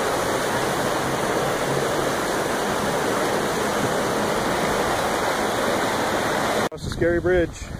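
A river rushes loudly over rapids.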